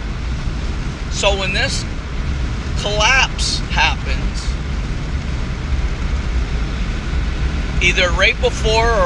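A car engine hums steadily inside a moving vehicle.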